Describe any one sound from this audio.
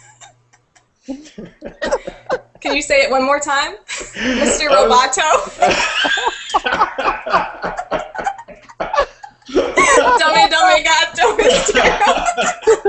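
A man laughs loudly through an online call.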